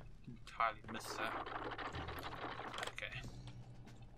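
A heavy wooden door creaks and scrapes open.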